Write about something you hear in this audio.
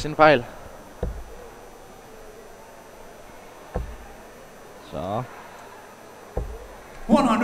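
A dart thuds into a dartboard.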